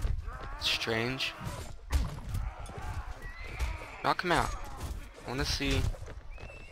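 Horse hooves thud rapidly on grass.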